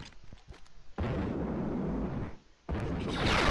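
A jetpack roars as it fires.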